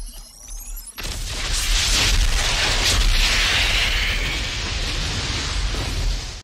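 An explosion roars in a huge, long blast.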